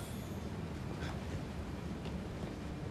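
Quick footsteps run across a wooden deck.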